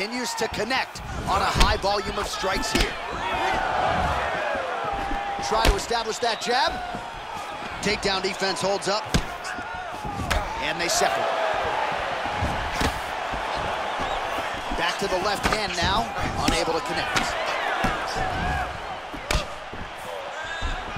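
A crowd cheers and murmurs in a large arena.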